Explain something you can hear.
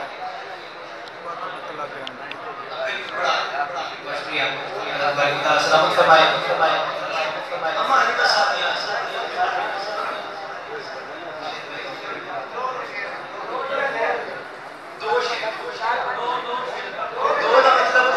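A man recites loudly through a microphone, heard over loudspeakers in a reverberant hall.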